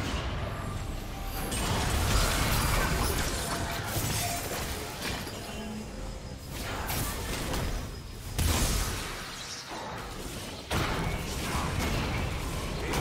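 Magic spells whoosh and crackle in a fast video game fight.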